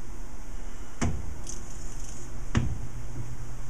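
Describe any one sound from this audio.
A metal lathe chuck clunks twice as it is turned by hand.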